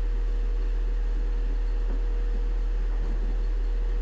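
Footsteps walk across a floor and move away.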